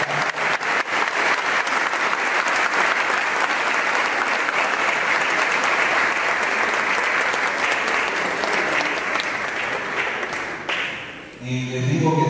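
A crowd claps steadily in a large echoing hall.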